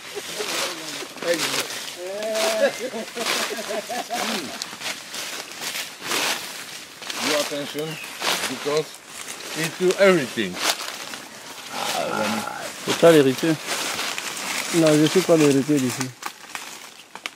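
Men talk and laugh outdoors at a distance.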